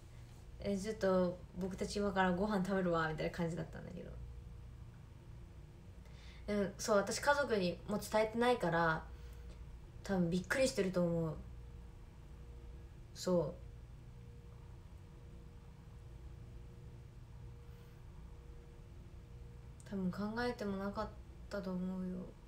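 A young woman speaks calmly and close to a microphone, pausing between phrases.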